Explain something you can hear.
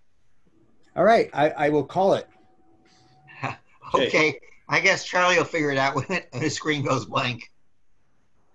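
A second older man answers and laughs over an online call.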